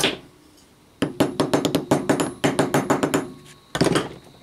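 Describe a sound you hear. A hammer taps rapidly on metal.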